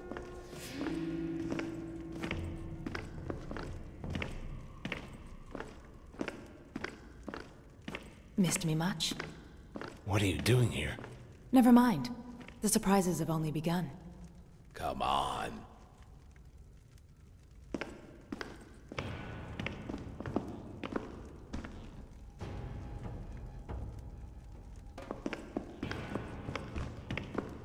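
Armoured footsteps clank steadily on a stone floor.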